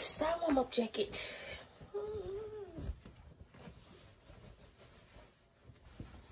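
Fabric rustles as a shirt is pulled on.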